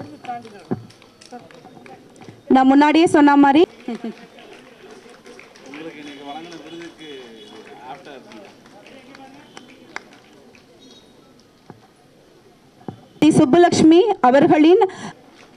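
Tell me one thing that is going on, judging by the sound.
A small crowd claps.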